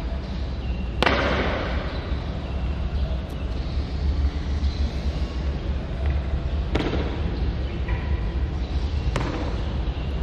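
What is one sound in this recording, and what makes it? Boots stamp sharply on a hard floor.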